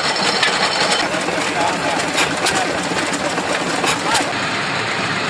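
An old stationary engine chugs and knocks nearby.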